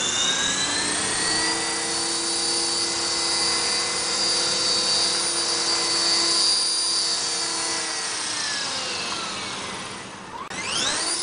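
A toy helicopter's rotor blades whir steadily as it hovers close by.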